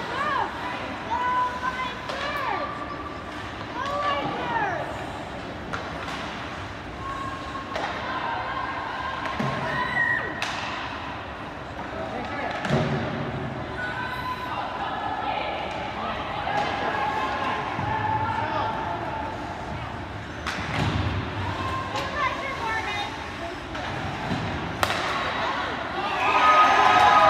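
Hockey sticks click and clack against the puck.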